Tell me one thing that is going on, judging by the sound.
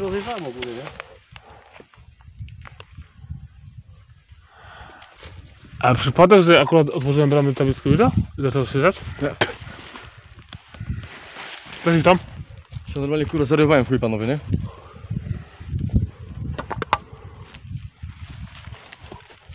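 Dry leaves and twigs rustle and crunch underfoot.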